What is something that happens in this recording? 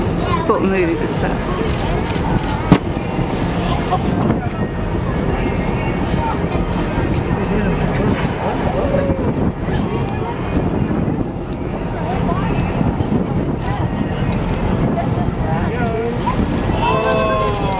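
Wind blows steadily across open water outdoors.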